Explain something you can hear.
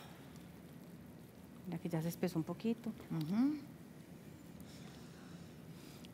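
A wooden spoon stirs food in a pan.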